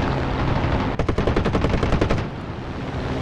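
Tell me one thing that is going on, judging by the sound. A plane's machine guns fire in a rapid burst.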